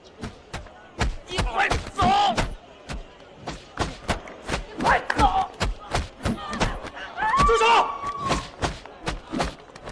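A young woman shouts and cries out.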